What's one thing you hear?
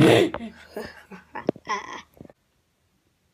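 A young boy speaks close to a phone microphone with excitement.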